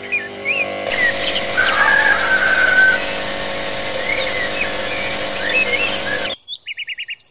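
An airbrush hisses steadily as it sprays paint.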